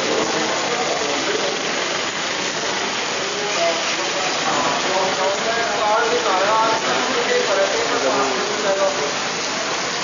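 Heavy rain pours down steadily onto wet pavement.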